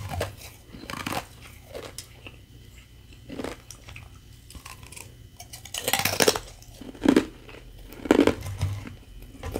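A woman crunches ice in her mouth close to a microphone.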